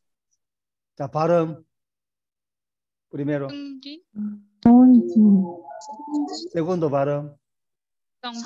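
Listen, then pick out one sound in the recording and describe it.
A man speaks calmly and explains over an online call.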